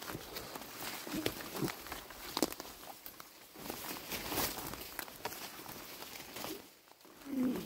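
Leafy branches brush and rustle against a passing body.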